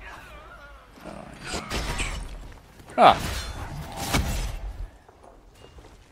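Weapons strike in combat.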